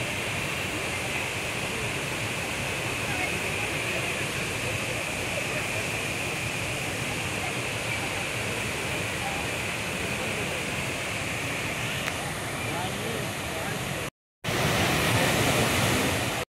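Waterfalls roar steadily into a pool.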